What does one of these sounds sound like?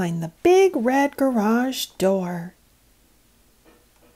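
A small plastic door clicks open.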